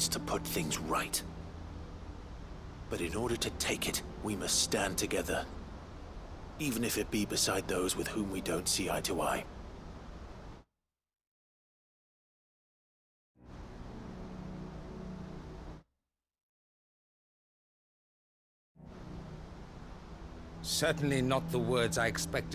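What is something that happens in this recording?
An older man speaks in a deep, measured voice.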